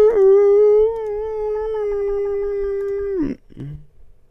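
A young man hums a long held note close to a microphone.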